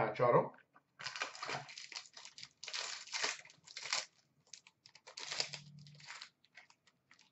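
Cardboard packaging rustles and scrapes between hands.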